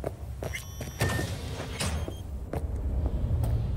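A heavy door slides open with a whoosh.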